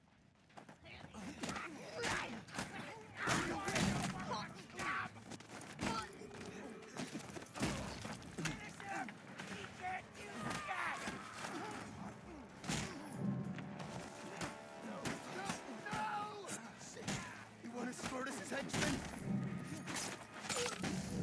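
Punches and kicks thud heavily in a brawl.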